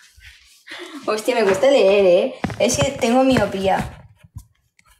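A young woman speaks with animation close to a phone.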